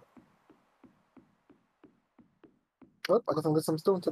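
A fishing bobber plops into water.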